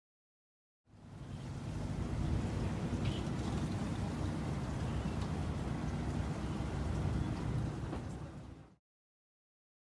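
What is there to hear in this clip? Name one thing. Water laps gently against wooden posts outdoors.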